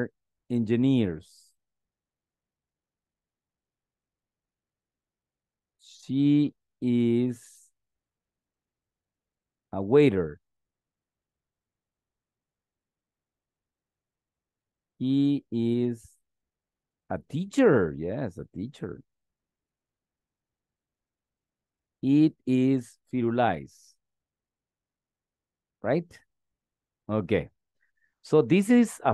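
A man speaks slowly and clearly over an online call, reading out short phrases with pauses between them.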